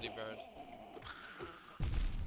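A sword slashes through the air with a sharp whoosh.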